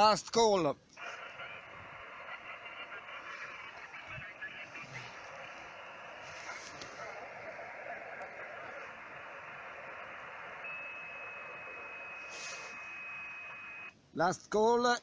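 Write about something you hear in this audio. Static hisses from a radio speaker.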